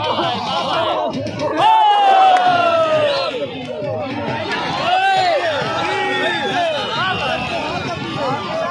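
A large outdoor crowd of men shouts and cheers loudly nearby.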